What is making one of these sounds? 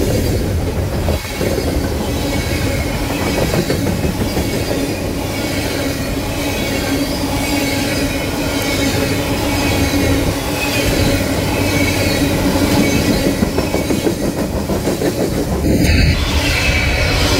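Steel wheels squeal faintly against the rails.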